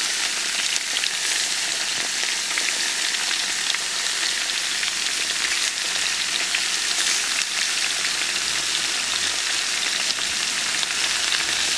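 Potatoes drop with soft thuds into a sizzling pot.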